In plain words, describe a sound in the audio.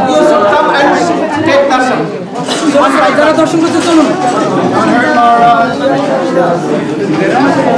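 A crowd of men sings along loudly and close by.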